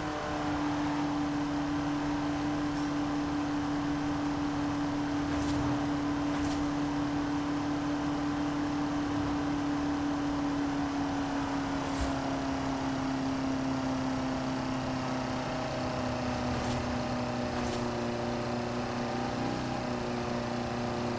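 A racing car engine drones steadily at high speed, its pitch slowly dropping as it slows.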